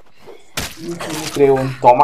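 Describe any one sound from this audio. Punches thud in a scuffle.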